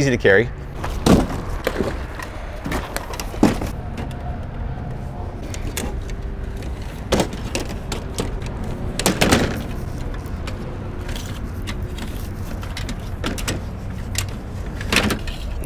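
Metal table parts clack and click as they are folded.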